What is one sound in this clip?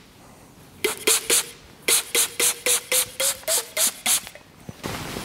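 A spray bottle hisses in quick bursts.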